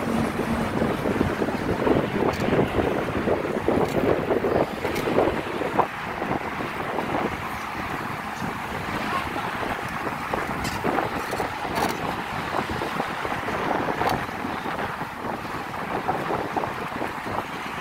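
Wind rushes and buffets against the microphone.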